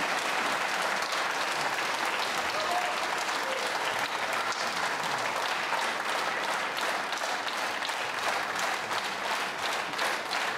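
A large audience applauds steadily outdoors.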